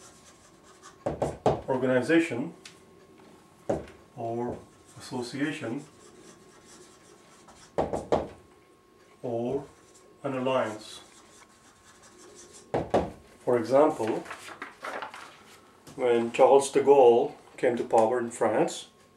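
A man speaks calmly and clearly close by, explaining in pauses.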